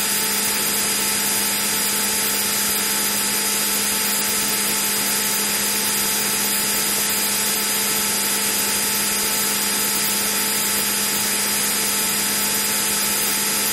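A synthesized jet engine drones steadily in an old computer flight game.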